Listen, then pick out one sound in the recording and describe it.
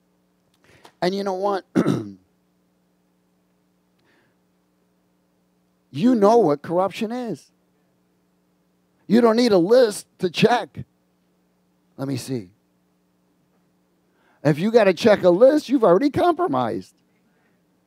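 A middle-aged man preaches with animation into a headset microphone, in short bursts with pauses.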